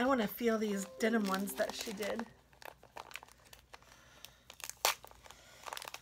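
Plastic sleeves crinkle and rustle as they are folded and handled.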